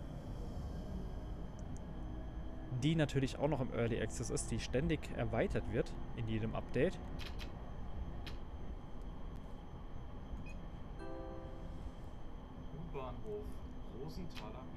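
A low-floor tram rumbles as it rolls along rails.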